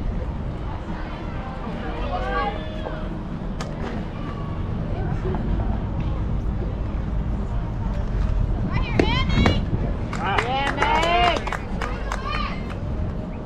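Young women shout and cheer from across an open field.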